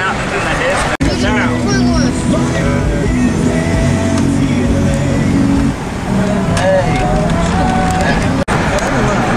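An engine hums as a car creeps forward in slow traffic.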